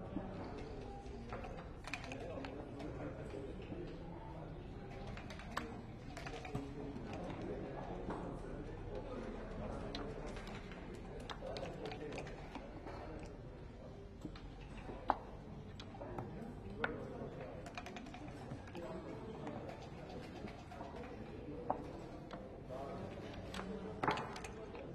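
Checkers click and slide on a wooden board.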